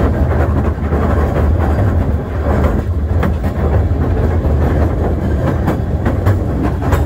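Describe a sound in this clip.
Strong wind rumbles and buffets outdoors.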